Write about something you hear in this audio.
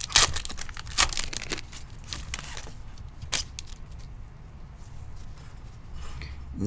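Gloved hands crinkle and rustle a foil card wrapper.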